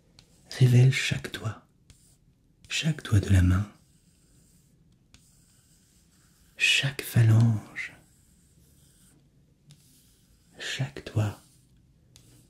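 A young man speaks softly in short bursts, close to a microphone.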